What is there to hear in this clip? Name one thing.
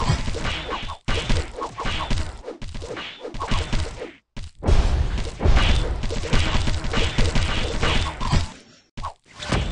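Game sword slashes and hit effects clash rapidly.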